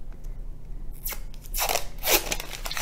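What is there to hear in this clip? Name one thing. A cardboard dough can is peeled and pops open.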